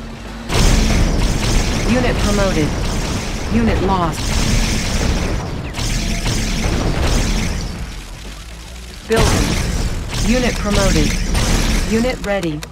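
Explosions and gunfire crackle in a noisy battle.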